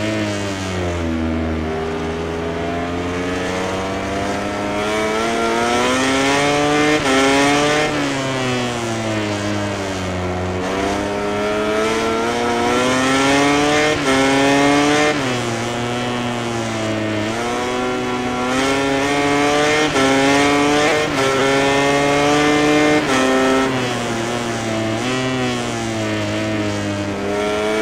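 A motorcycle engine roars and revs up and down through the gears.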